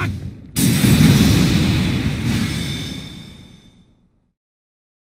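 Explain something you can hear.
A huge blast booms and rumbles away.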